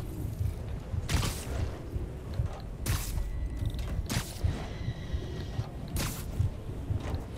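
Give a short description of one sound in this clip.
Air rushes past in short, sharp bursts.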